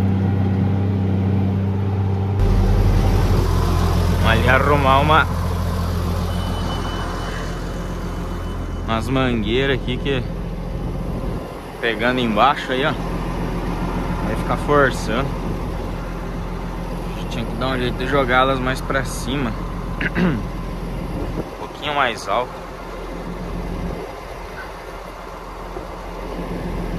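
A diesel tractor engine runs.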